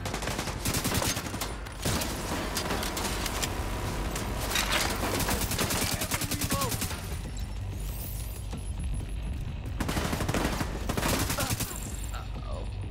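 Rifle fire crackles in rapid bursts.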